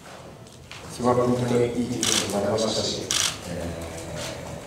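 A young man speaks calmly into a microphone, heard through a loudspeaker in a large room.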